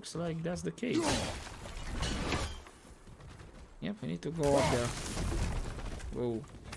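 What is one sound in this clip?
An axe whooshes and strikes with heavy impacts.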